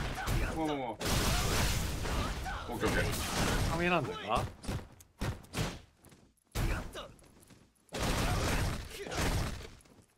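A burst of energy whooshes and crackles.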